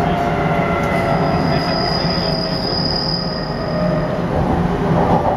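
Train wheels squeal high on a curve.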